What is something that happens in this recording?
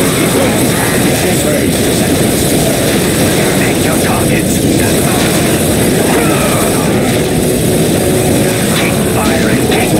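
Gunfire and explosions crackle and boom in a chaotic battle.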